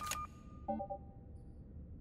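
An electronic keypad beeps.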